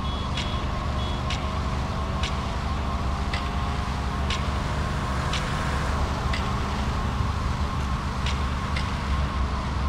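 Roller skates roll and click on pavement.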